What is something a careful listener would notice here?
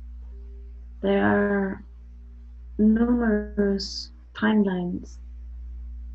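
A woman speaks briefly and calmly over an online call.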